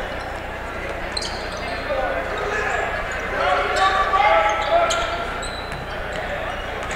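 A crowd in a large echoing gym cheers and shouts.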